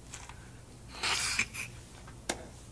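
A man gasps for breath nearby.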